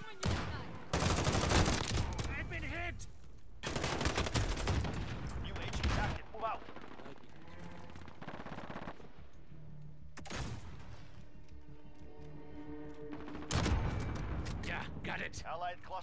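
Rifle shots fire with loud, sharp blasts in bursts.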